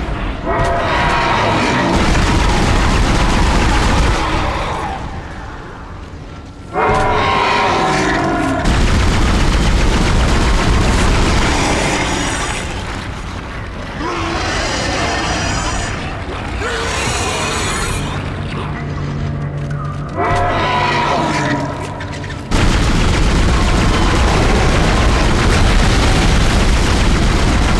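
A creature shrieks and growls.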